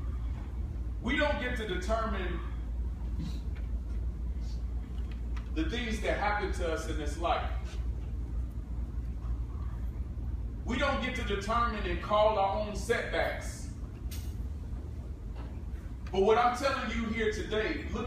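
A man speaks calmly through a microphone, with long pauses, in a large echoing room.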